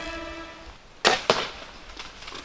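A rifle fires a single loud shot close by.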